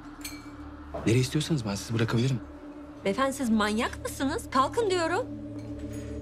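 A young woman speaks tensely close by.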